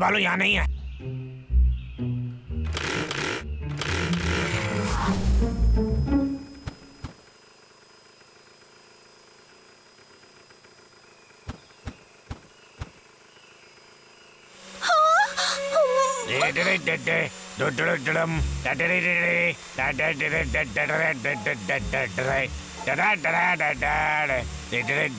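A chainsaw revs loudly.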